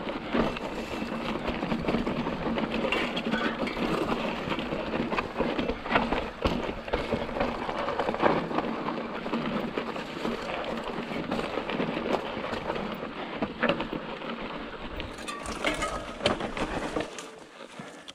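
Bicycle tyres crunch and rumble over a rough dirt trail.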